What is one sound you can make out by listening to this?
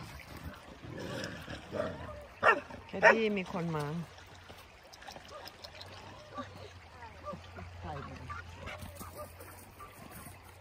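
Shallow river water ripples and gurgles over stones close by.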